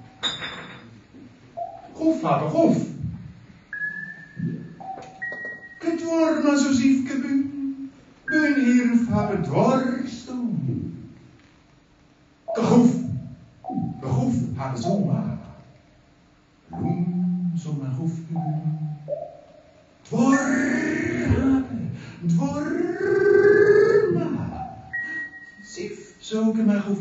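A middle-aged man makes animated vocal sounds into a microphone, with short pauses.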